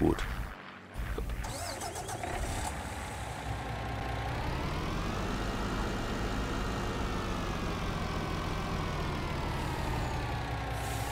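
A truck's diesel engine rumbles and revs up as the truck pulls away.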